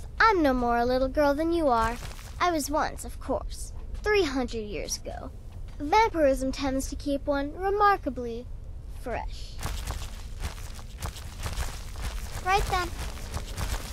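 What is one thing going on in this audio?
A young girl speaks calmly and clearly, up close.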